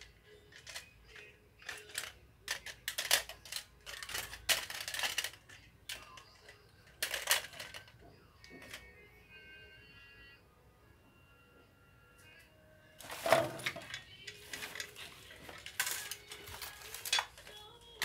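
Plastic toys clatter and knock together as they are handled.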